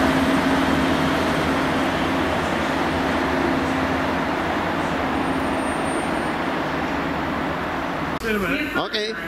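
A diesel train rumbles and hums steadily as it approaches.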